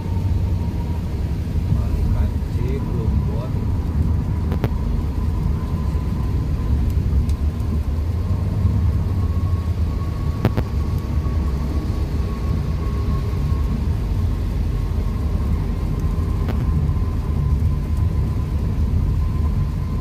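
Rain patters on the windscreen.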